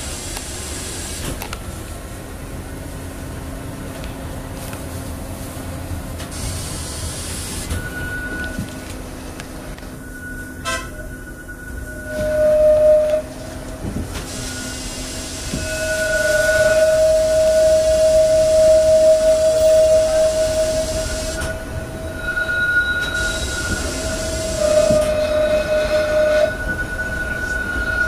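A bus engine hums and rumbles steadily as the bus drives.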